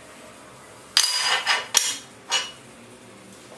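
A metal tool scrapes harshly against a steel plate in a few short bursts.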